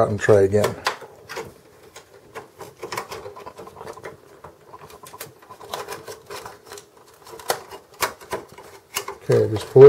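Plastic connectors click and rattle as hands work them loose.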